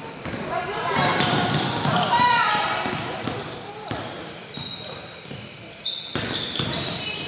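Sneakers squeak sharply on a hardwood court in an echoing gym.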